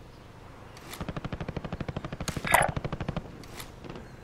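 A rifle fires in a rapid automatic burst.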